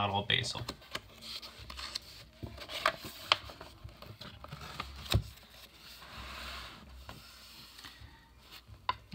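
Paper pages rustle and crinkle as they are handled.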